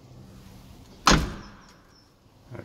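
A metal door handle rattles as a door is pulled open.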